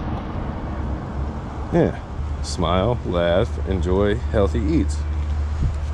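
A tape measure rattles and clicks as it is pulled out.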